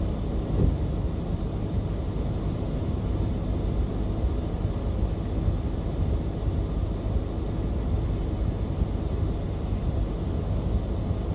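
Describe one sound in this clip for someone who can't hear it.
Wind blows steadily and rumbles outdoors.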